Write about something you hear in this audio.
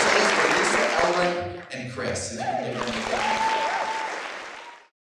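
A choir sings in a large, echoing hall.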